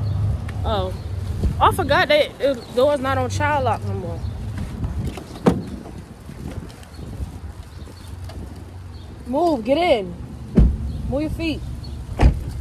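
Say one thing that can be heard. A young woman talks close by with animation.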